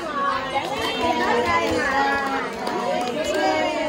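Women clap their hands.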